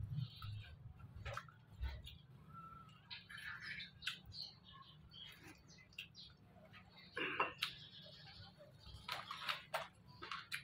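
A woman chews and slurps food up close.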